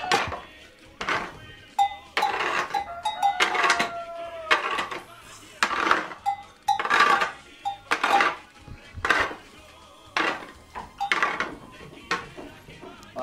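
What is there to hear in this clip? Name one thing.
A pitchfork scrapes and rustles through straw on a hard floor.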